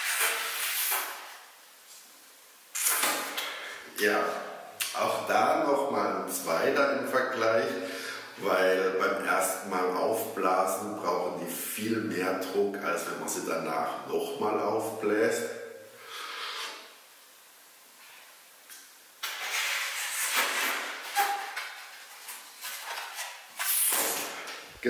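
A man blows hard into a balloon.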